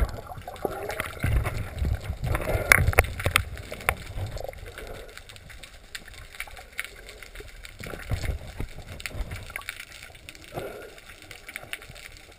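Water swirls and bubbles with a muffled underwater rush.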